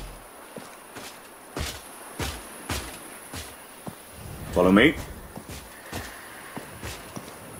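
Footsteps tap on stone pavement at a walking pace.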